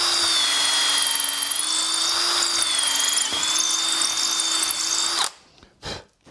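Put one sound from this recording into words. A cordless drill whines steadily as it bores into wood.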